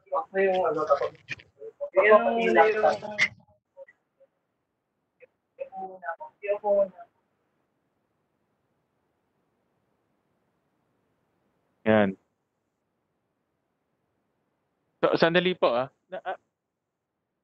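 A man speaks calmly through a microphone over an online call.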